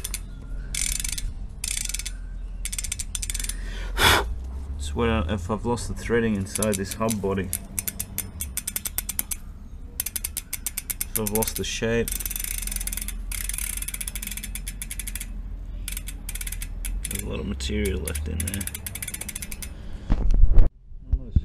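A bicycle hub ratchets with rapid clicking as it is turned by hand.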